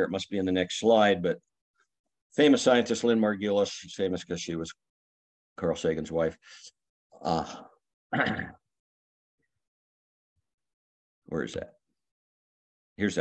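An elderly man speaks calmly through a microphone on an online call, pausing between phrases.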